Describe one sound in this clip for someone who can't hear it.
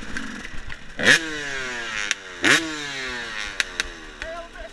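Another enduro dirt bike revs close ahead.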